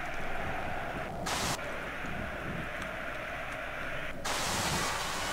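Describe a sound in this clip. Radio static hisses in bursts as a dial is turned.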